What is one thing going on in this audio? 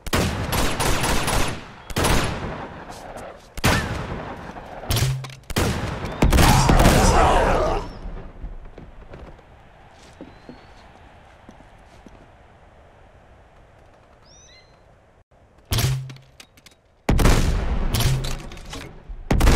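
Gunshots crack loudly in bursts.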